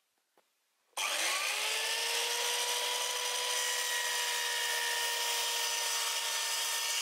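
A power saw motor spins up and whines steadily.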